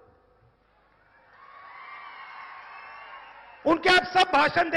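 A large crowd cheers and applauds.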